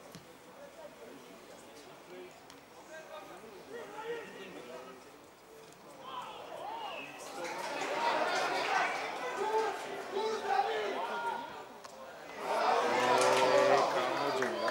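Young men shout to each other across an open football pitch outdoors.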